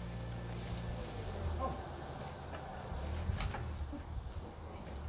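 Leaves rustle and twigs snap as a man pushes through a hedge.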